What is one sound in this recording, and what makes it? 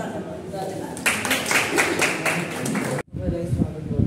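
A group of people claps.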